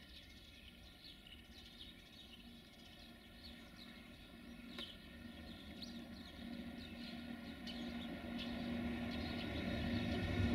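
An electric locomotive approaches on the rails, its rumble and hum growing louder.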